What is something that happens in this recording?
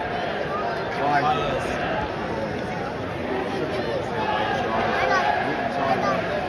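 A large stadium crowd roars and chants loudly all around.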